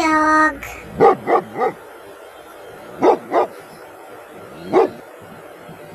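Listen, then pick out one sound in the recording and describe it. A dog barks.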